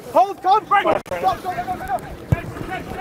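Players shout calls across the pitch outdoors.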